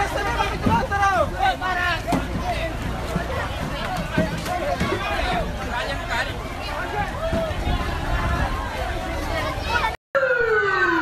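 A crowd of people shouts and talks excitedly outdoors.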